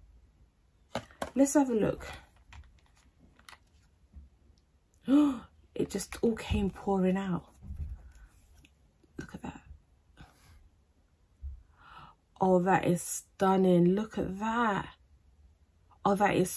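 A young woman talks calmly and close to a microphone, in short bursts with pauses.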